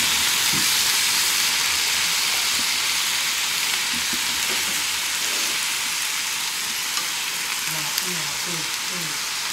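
Meat sizzles loudly in a hot pan.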